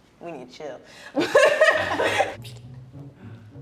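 Two young women laugh loudly up close.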